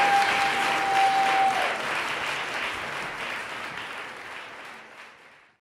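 An audience applauds loudly in an echoing hall, fading away.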